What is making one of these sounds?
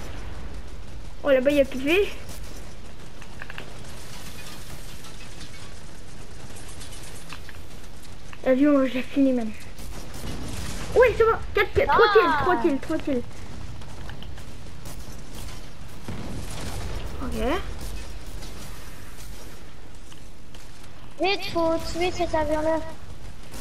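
Rapid gunshots fire in bursts.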